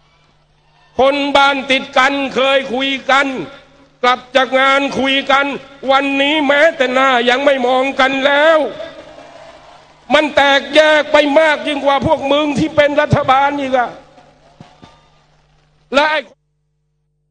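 A middle-aged man speaks forcefully into a microphone over loudspeakers.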